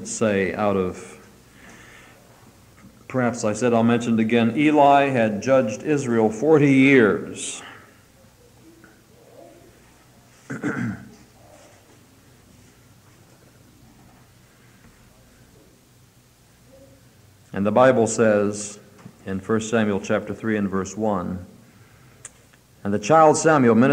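A man speaks calmly, with pauses.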